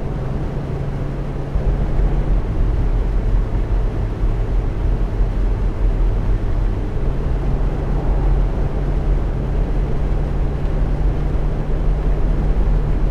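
Tyres roll and rumble on the road surface.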